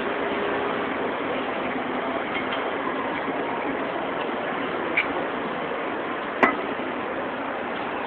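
A knife and fork scrape and clink on a plate.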